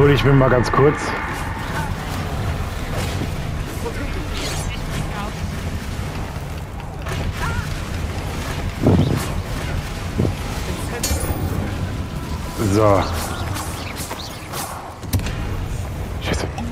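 Magic spells crack and blast in quick bursts.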